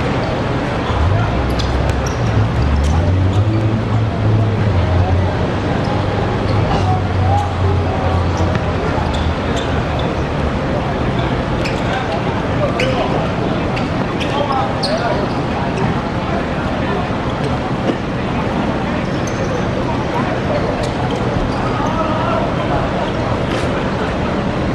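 A futsal ball is kicked and thuds on a hard court.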